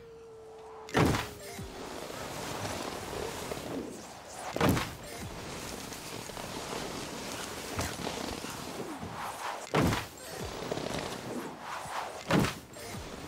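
A snowboard lands with a thud on snow.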